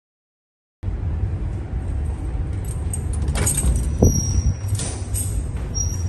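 A door latch clicks.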